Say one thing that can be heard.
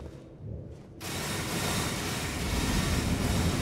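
A magical whoosh swirls and rings out.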